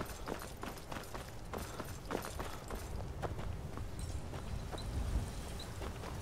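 Footsteps thud on cobblestones.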